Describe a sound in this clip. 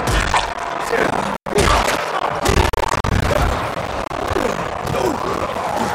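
Blows thud in a fight.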